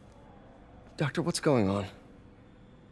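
A young man asks a question with concern.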